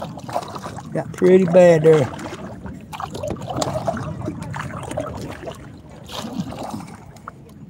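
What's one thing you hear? Water laps gently against a small plastic boat's hull.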